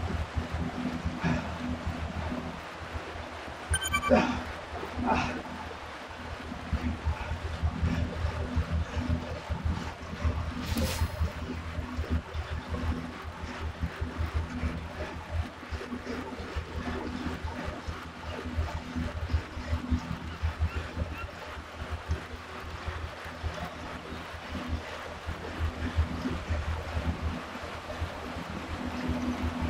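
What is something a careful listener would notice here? An indoor bike trainer whirs steadily under hard pedalling.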